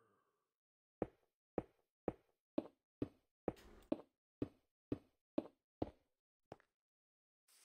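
Quick, regular clicks of blocks being mined.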